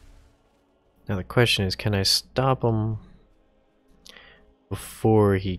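A man talks loudly and with animation close to a microphone.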